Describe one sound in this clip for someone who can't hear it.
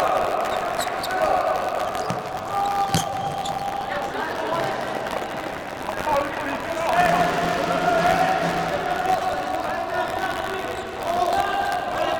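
Sneakers squeak sharply on a hard court.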